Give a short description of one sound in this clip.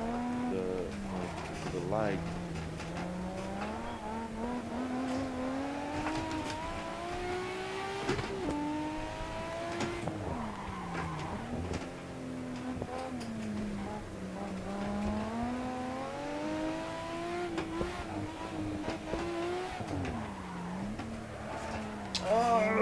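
Tyres squeal on the road through the bends.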